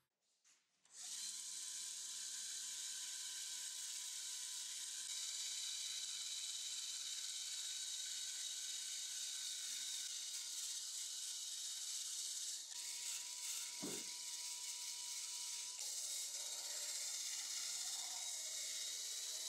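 A drill spins a wire brush that whirs and scrapes against metal.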